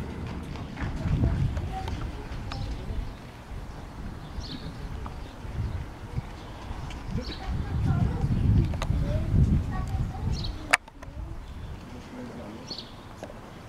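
Men and women talk quietly nearby outdoors.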